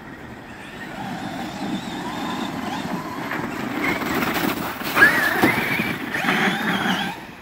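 Small tyres crunch and scrape over snow and dirt.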